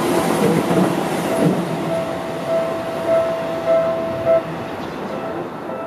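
A second train approaches with a low hum of its motors.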